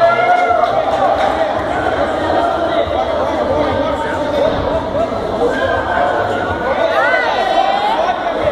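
A crowd of spectators shouts and cheers throughout in a large echoing hall.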